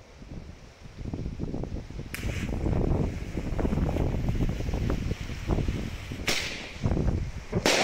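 A small firework hisses and crackles as it sprays sparks outdoors.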